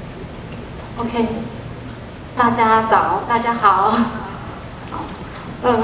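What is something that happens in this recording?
A young woman speaks into a microphone over loudspeakers in a large hall.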